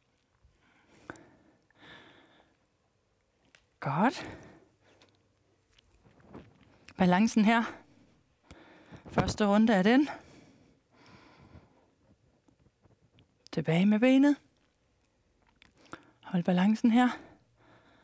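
A woman speaks calmly and with energy into a close microphone, in short bursts with pauses.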